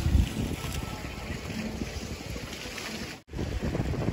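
A fountain splashes softly nearby.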